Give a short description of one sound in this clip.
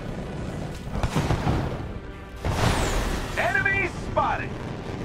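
Energy blasts fire with sharp bursts.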